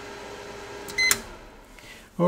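A switch clicks once.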